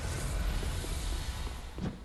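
A burst of fire whooshes.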